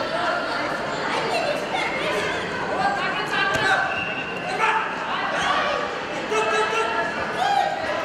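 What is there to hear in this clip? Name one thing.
A crowd of children and adults chatters and shouts in a large echoing hall.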